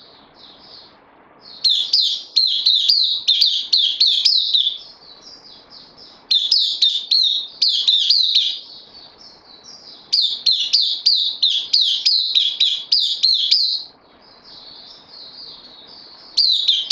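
A small songbird sings loud, rapid, warbling trills in bursts close by.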